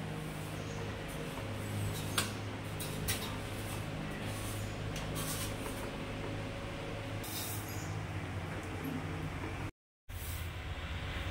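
A long-handled duster brushes and scrapes against a wall.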